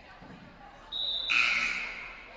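A referee's whistle blows once, sharply.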